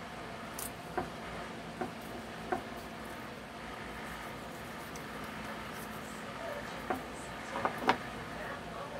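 A knife taps against a plastic cutting board.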